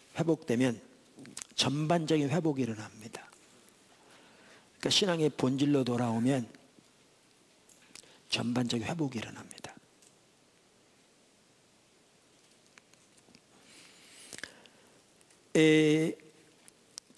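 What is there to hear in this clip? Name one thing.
An elderly man speaks slowly and calmly through a microphone, with long pauses.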